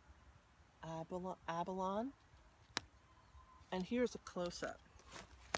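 A middle-aged woman talks with animation close by, outdoors.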